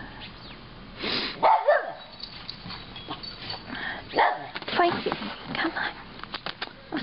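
A small dog barks sharply several times.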